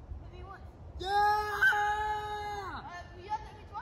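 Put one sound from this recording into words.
A child shouts loudly outdoors, some distance away.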